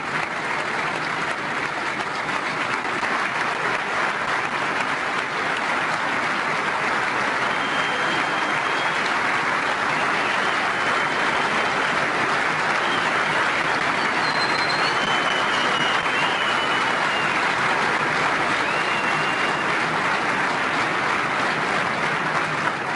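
A large crowd applauds and cheers loudly in a big echoing hall.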